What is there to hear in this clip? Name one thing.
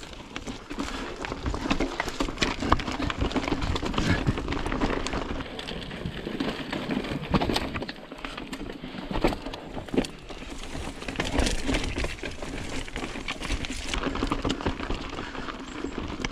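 A bicycle frame and chain clatter over bumps.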